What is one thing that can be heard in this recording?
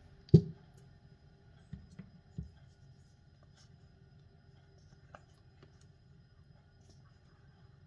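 Liquid trickles thinly into a bowl.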